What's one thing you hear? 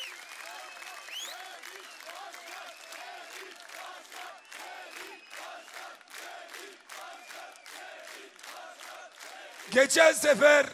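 A crowd claps rhythmically.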